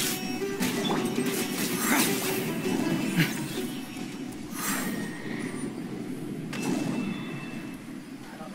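Magical effects whoosh and sparkle.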